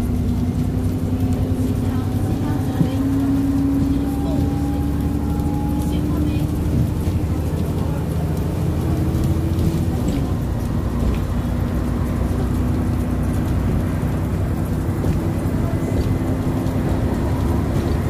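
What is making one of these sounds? A bus engine hums and whines steadily as the bus drives along.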